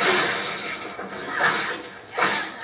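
A gun fires a shot.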